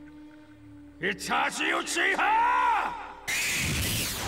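A man shouts fiercely, his voice rising and cracking.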